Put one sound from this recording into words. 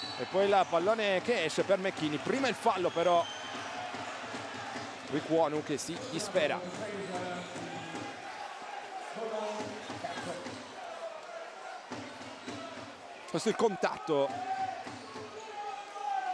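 A large indoor crowd murmurs and cheers, echoing in a big hall.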